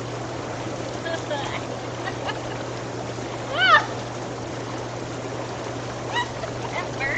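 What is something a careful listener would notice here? Young women chat and laugh close by.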